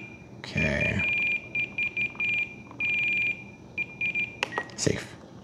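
An electronic controller beeps in short tones.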